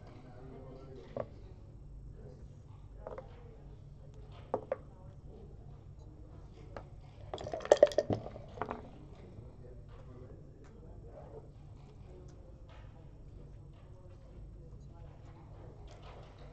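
Plastic game pieces click as they are moved and set down on a board.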